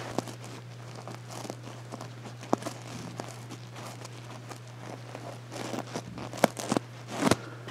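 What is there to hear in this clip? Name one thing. Fingers brush over sequins, making soft rustling and clicking sounds.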